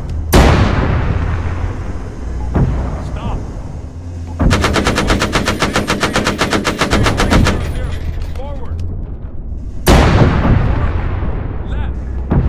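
Heavy cannons fire with loud booming blasts.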